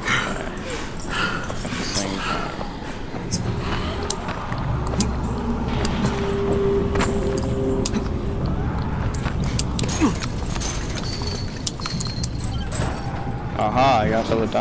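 Footsteps run quickly over hard ground and rooftops.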